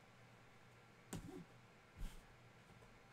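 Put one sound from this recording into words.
A hand knocks lightly against something close by.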